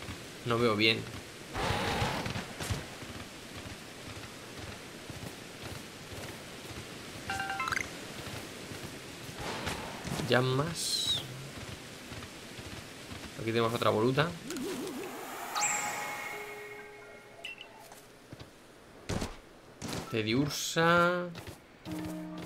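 A young man talks into a close microphone with animation, in short bursts.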